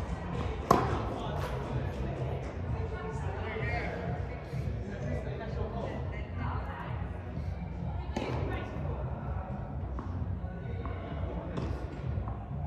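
A tennis ball is struck with a racket, with sharp pops echoing in a large hall.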